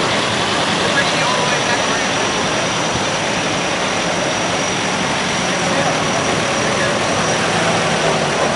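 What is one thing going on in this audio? An old car engine idles and drives slowly past close by.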